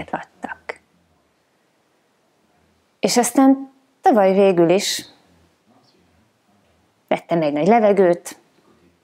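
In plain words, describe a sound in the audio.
A woman speaks calmly and closely into a microphone, in short phrases with pauses.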